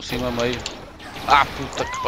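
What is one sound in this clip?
A laser gun fires with short electric zaps.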